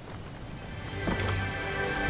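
A wooden door opens with a creak.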